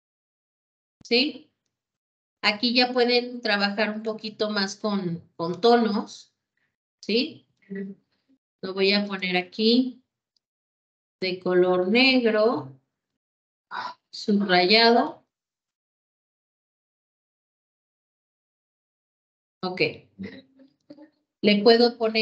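A woman speaks calmly over an online call, in bursts with pauses.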